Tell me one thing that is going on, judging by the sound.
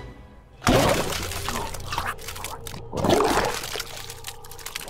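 Flesh tears with loud, wet, crunching sounds.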